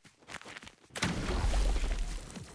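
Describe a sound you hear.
A heavy thump sounds as a game character lands.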